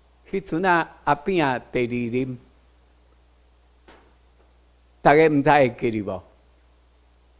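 A man speaks with emphasis through a microphone and loudspeakers.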